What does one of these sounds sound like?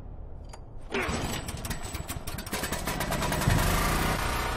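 A generator engine starts and runs with a steady rumble.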